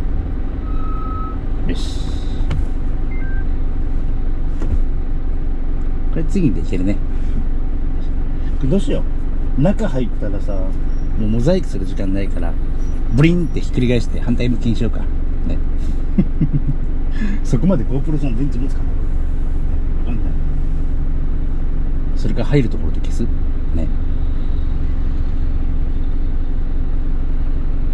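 A truck engine idles with a low steady rumble inside a cab.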